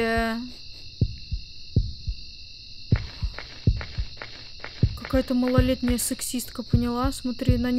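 Footsteps tap on the ground.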